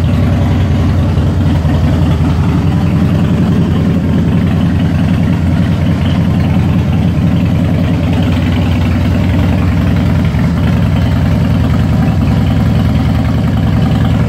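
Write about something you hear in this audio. A motorcycle engine idles with a steady, low, throbbing rumble close by.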